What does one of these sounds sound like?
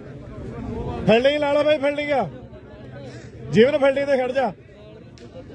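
Men shout loudly together outdoors.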